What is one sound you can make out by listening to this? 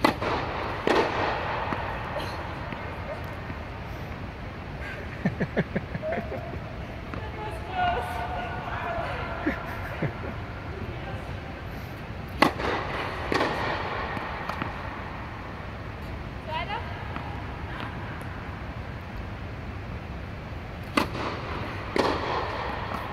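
A tennis racket strikes a ball with a sharp pop in an echoing hall.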